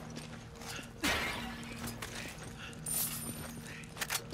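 Clay pots shatter.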